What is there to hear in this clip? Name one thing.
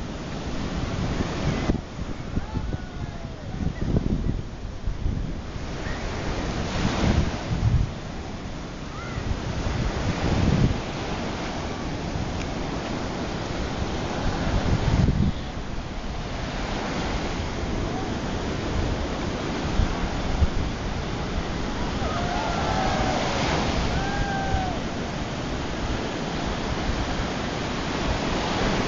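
Waves break and wash onto a beach.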